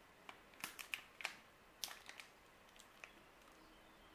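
A chocolate bar's crisp coating cracks and crunches as it is broken apart, up close.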